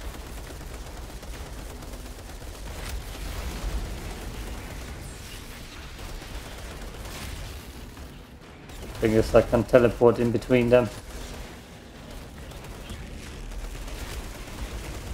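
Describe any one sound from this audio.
A gun fires.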